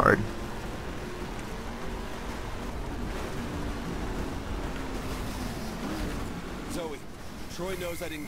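A truck engine roars steadily as it drives over rough ground.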